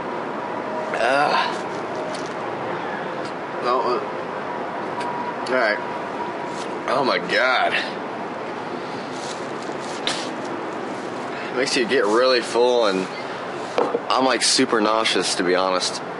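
A young man speaks casually and close by.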